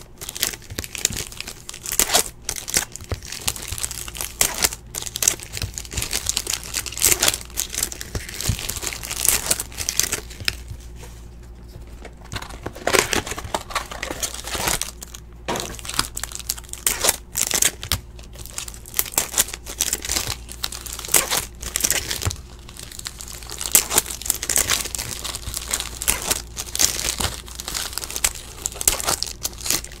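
Trading cards flick and rustle as a hand sorts through a stack.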